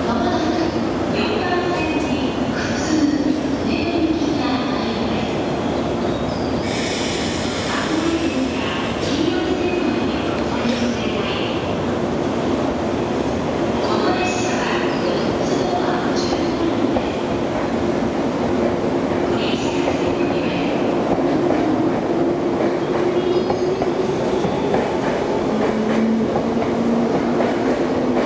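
A train's motors hum steadily close by.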